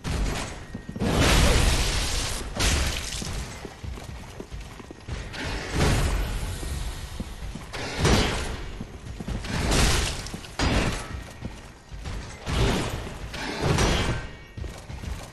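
Metal blades clash and clang in a sword fight.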